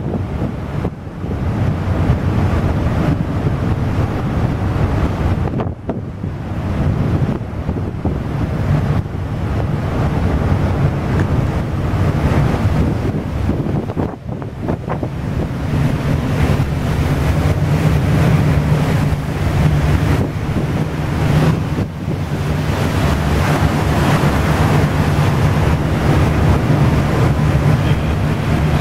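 Wind blows across the open deck.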